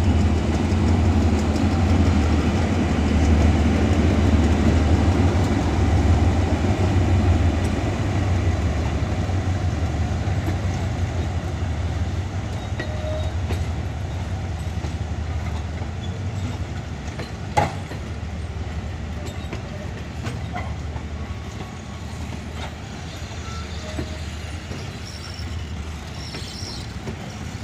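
A diesel-electric locomotive rumbles as it pulls away.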